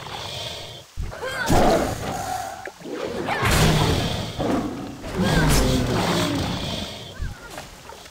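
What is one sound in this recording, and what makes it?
Magic blasts and weapon hits crackle and boom in a fight.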